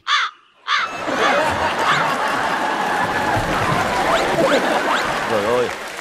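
A group of people laugh loudly together.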